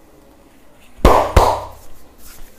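Hands slap sharply against a bare back.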